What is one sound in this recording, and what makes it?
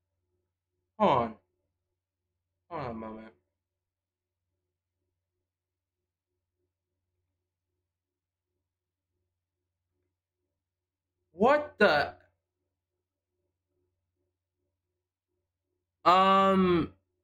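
A young man speaks in short bursts into a close microphone, with long pauses between.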